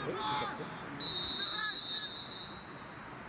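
A referee's whistle blows once.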